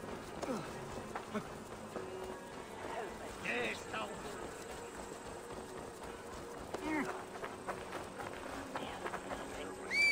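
Footsteps run over soft earth.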